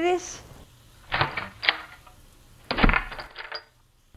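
A woman answers curtly.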